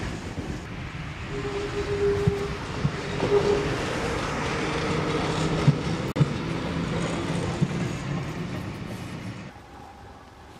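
A tram clatters over a small bridge nearby.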